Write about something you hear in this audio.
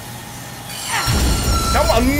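A vehicle crashes with a loud burst of noise.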